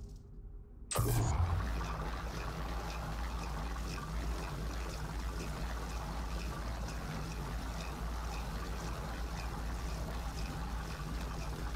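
A machine starts up and hums with a low, steady drone.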